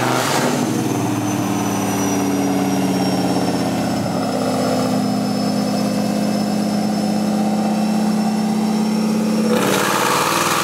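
A car engine roars loudly at steady high revs.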